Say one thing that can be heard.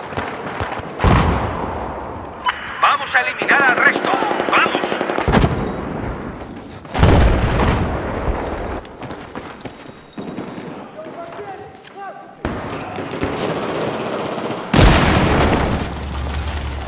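Explosions boom with deep rumbling.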